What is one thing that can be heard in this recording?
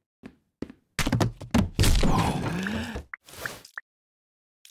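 A man tumbles down stairs with heavy thuds.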